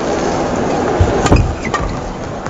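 A racket strikes a shuttlecock with sharp pops in an echoing hall.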